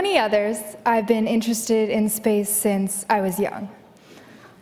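A young woman speaks with animation into a microphone in a large hall.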